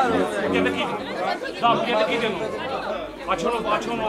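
An elderly man speaks through a microphone.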